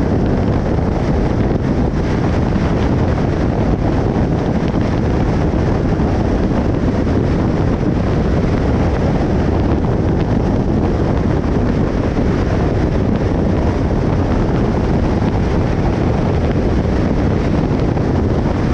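Road noise from tyres on a highway roars steadily.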